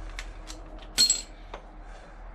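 A metal tool clinks sharply once.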